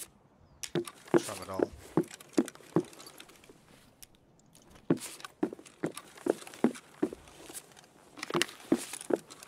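Footsteps knock slowly on a wooden floor.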